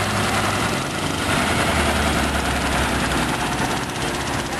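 A heavy vehicle engine rumbles as it drives past.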